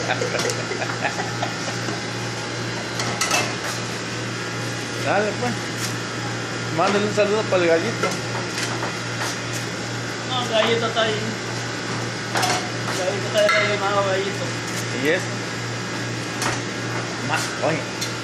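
Plastic dishes clatter and knock together.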